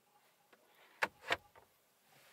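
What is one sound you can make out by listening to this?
A car's glove box lid clicks shut.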